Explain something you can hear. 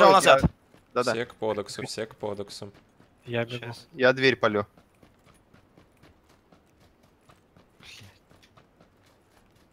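Footsteps run over gravel and grass.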